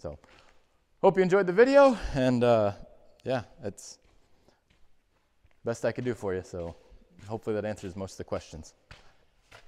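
A man talks casually and close up through a clip-on microphone, in a large echoing space.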